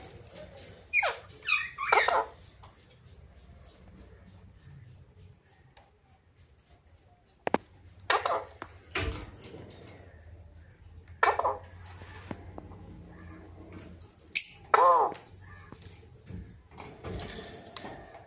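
Parrots screech loudly in short, sharp calls.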